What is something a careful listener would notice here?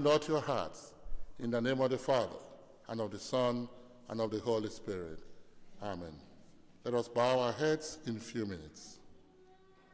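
A man speaks with animation through a microphone in an echoing room.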